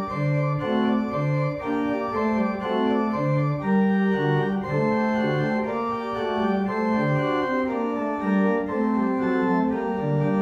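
A pipe organ plays a flowing melody with sustained chords.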